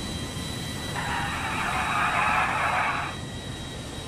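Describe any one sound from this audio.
Tyres screech as a car skids.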